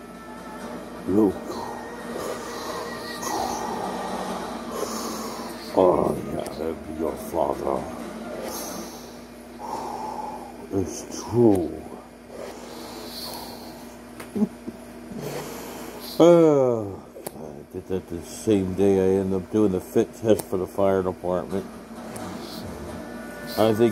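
A man speaks close by, muffled through a face mask.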